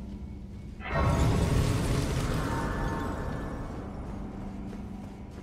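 A swelling chime rings out as a grace is discovered.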